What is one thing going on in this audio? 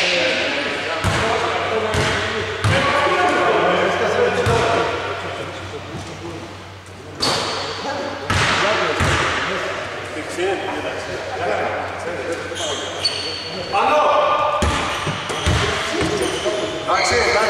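A basketball bounces on a wooden court, echoing in a large hall.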